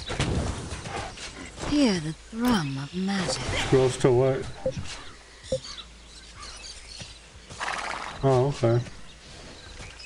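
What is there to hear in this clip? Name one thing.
A man talks animatedly into a microphone, close up.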